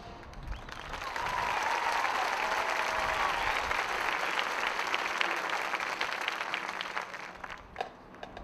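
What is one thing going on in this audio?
A crowd in a stadium cheers and applauds loudly outdoors.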